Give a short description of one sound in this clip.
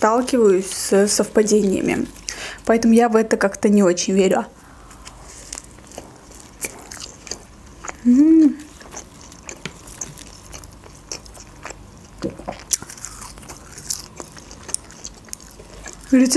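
Fingers tear and rustle crisp flatbread.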